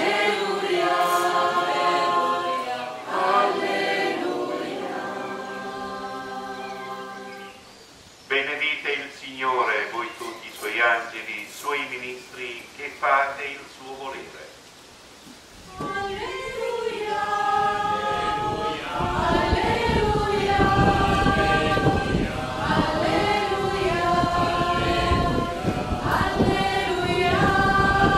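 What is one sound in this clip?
A crowd of men and women sings a hymn together.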